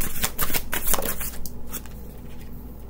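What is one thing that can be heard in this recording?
Hands rustle and tap small objects close by.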